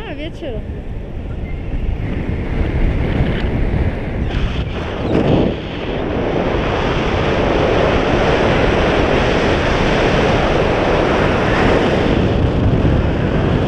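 Strong wind roars and buffets against a microphone outdoors.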